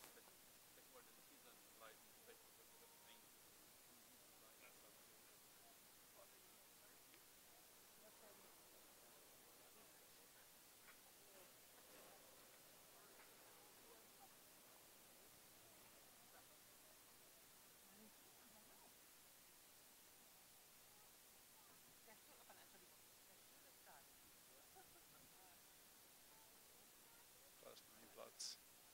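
A small group of adults murmurs quietly outdoors.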